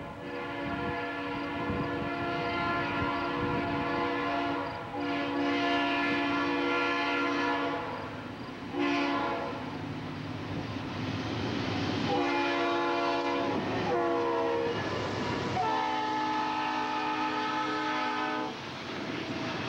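A train horn blasts loudly in long, repeated calls as a train approaches.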